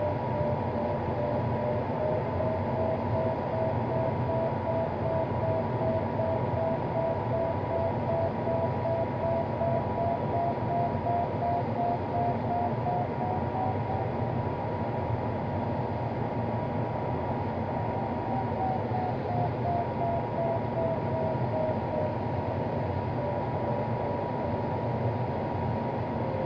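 Air rushes over a glider's canopy.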